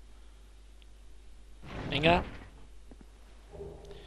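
A heavy chest lid creaks open.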